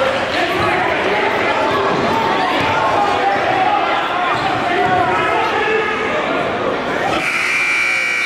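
Young women cheer and chant together in a large echoing hall.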